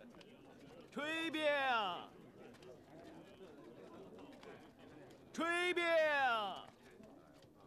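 A man calls out loudly in a long, drawn-out street-vendor cry.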